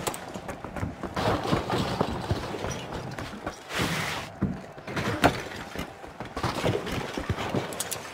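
Footsteps clatter quickly across roof tiles.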